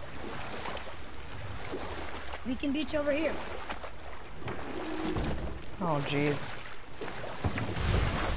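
Water splashes around a rowing boat.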